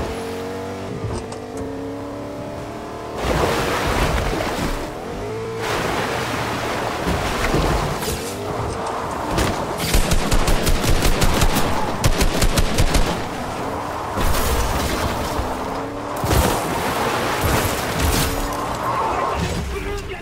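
A truck engine roars as the truck drives.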